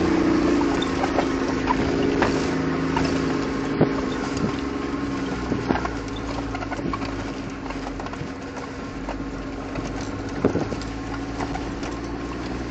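Tyres crunch and rattle over rough stony ground, with sharp knocks now and then.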